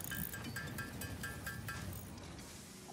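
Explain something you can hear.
Short electronic beeps chime in quick succession.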